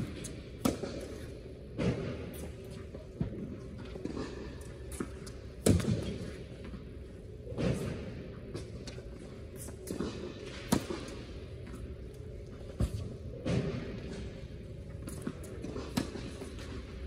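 Sneakers squeak and scuff on a hard court.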